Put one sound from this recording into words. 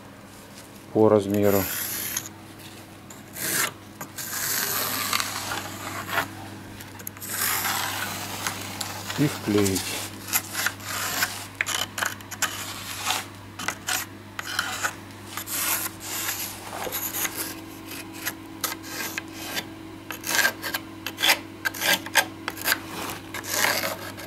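A knife scrapes and shaves wood in quick strokes.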